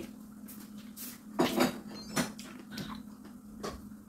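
A young woman bites into crisp fruit with wet, crunchy chewing sounds.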